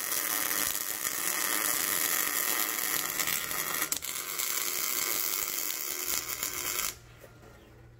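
An arc welder crackles and hisses steadily.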